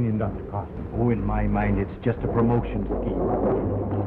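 A man speaks sternly.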